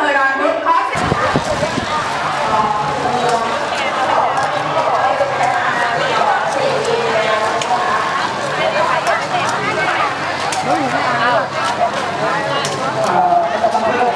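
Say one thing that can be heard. Many footsteps shuffle on pavement.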